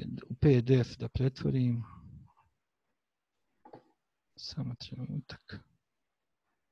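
A man speaks calmly through an online call microphone, in short bursts with pauses.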